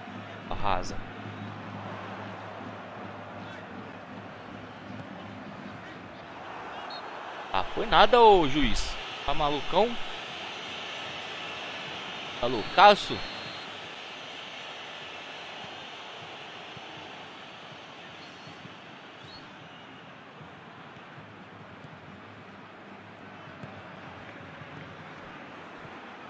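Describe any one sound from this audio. A football match crowd murmurs steadily in the background.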